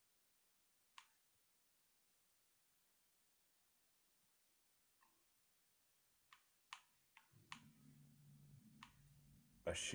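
Short menu clicks sound from a television speaker.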